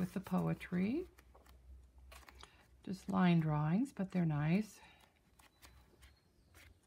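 Paper pages rustle softly as they are turned.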